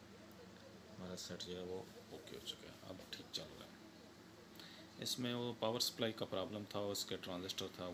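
A man talks through a television speaker.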